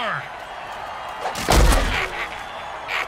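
Players collide with a heavy thud.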